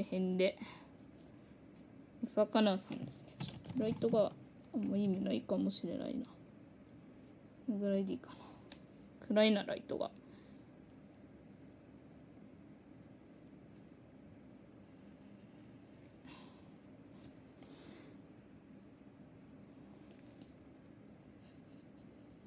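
A pencil draws lightly on card.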